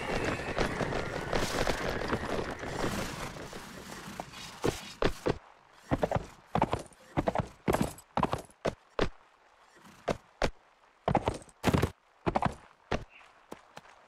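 A horse's hooves thud rhythmically on grass as it gallops.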